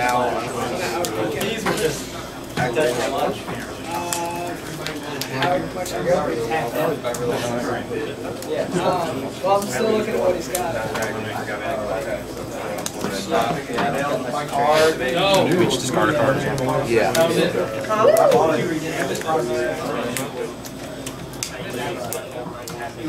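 Playing cards riffle and tap softly as they are shuffled.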